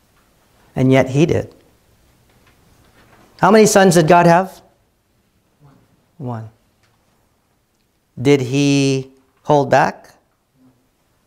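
A middle-aged man preaches with animation into a microphone in an echoing room, pausing between phrases.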